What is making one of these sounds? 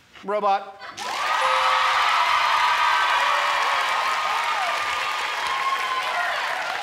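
A studio audience cheers and applauds loudly.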